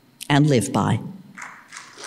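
An elderly woman speaks briefly into a microphone.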